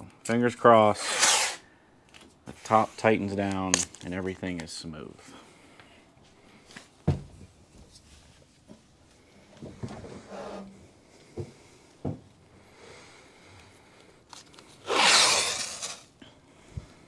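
Masking tape rips loudly off a roll.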